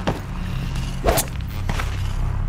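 A loud blast bursts nearby.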